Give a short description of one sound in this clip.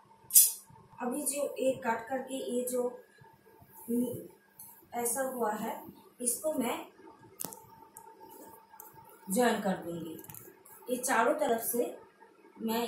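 A woman speaks nearby with animation.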